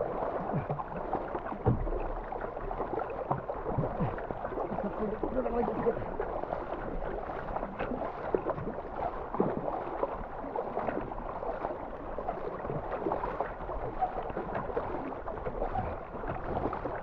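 River water rushes and gurgles steadily.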